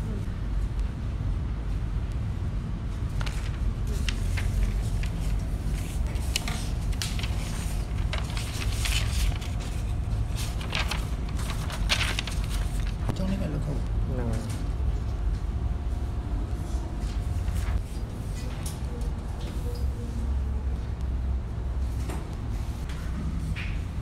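Pens scratch on paper.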